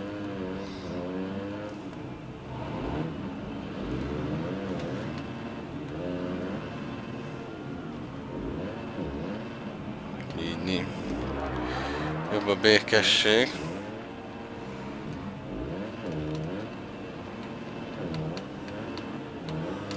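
A motorcycle engine revs and whines, rising and falling as the gears change.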